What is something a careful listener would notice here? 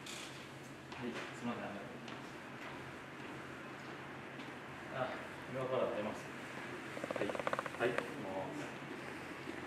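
A man talks quietly on a phone.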